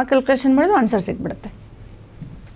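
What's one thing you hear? A young woman speaks clearly into a close microphone.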